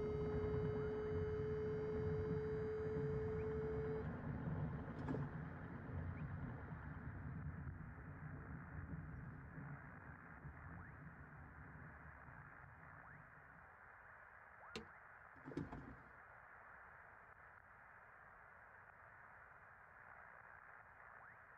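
Wind rushes softly past a glider's canopy.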